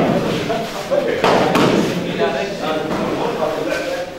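Bodies thump onto padded floor mats.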